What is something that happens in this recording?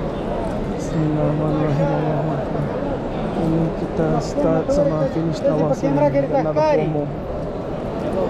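Many men chant together loudly nearby.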